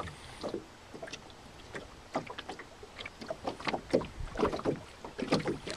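A sail flaps and rustles in the wind.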